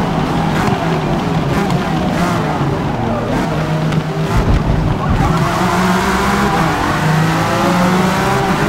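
Other racing car engines whine nearby.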